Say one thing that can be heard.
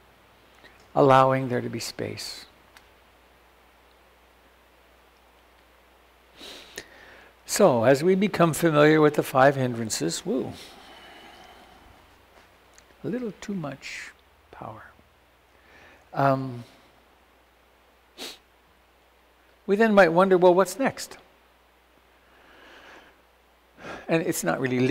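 An elderly man speaks calmly into a nearby microphone, pausing often.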